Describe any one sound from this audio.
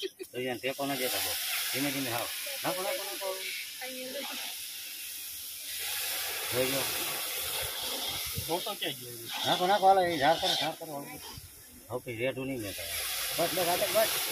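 Liquid pours into a hot pan with a splashing hiss.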